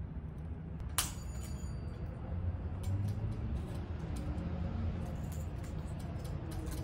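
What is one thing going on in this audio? Broken glass clatters into a plastic bin.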